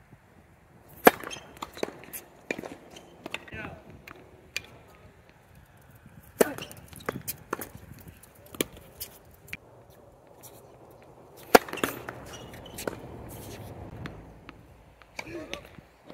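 A tennis ball bounces repeatedly on a hard court.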